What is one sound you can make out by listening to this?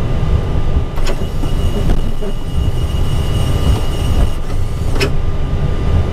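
Switches click overhead.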